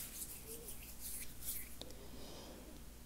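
Hands rustle and brush close to a microphone.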